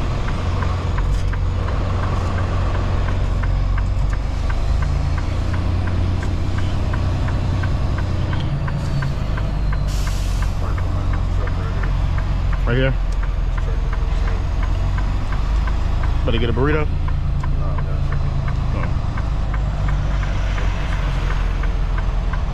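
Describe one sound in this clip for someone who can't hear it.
A truck's diesel engine rumbles steadily from inside the cab.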